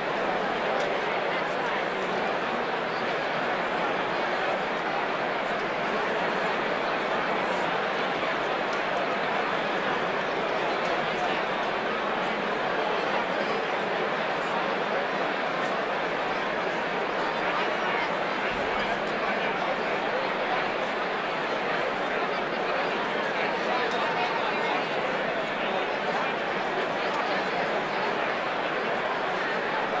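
A large crowd of men and women chatters loudly in a big echoing hall.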